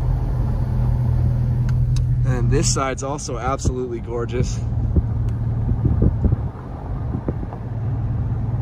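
A car's engine hums steadily with road noise from inside the moving car.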